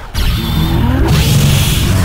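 A loud energy beam roars.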